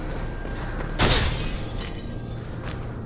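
Glass shatters loudly and shards scatter across a hard floor.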